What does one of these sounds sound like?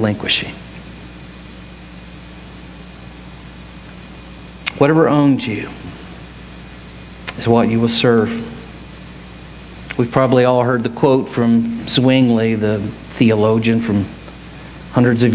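A middle-aged man speaks calmly through a headset microphone, pausing often.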